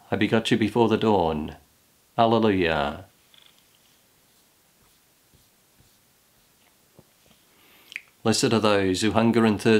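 A middle-aged man speaks calmly and close up, with pauses.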